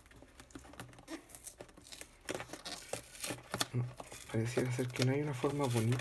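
Cardboard rustles and scrapes as a box is opened by hand.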